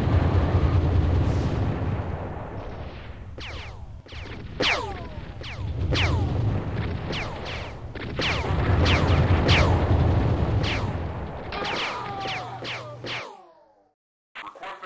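Gunfire and explosions rattle in rapid bursts.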